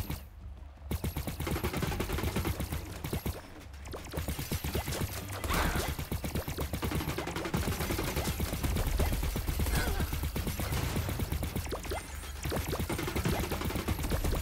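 Rapid video game shots fire and pop in quick bursts.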